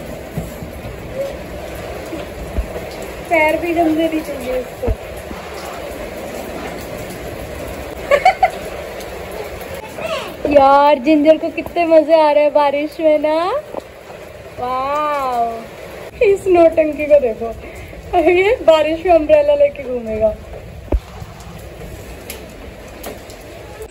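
Light rain patters on wet ground.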